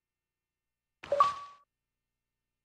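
A soft chime sounds as a menu opens.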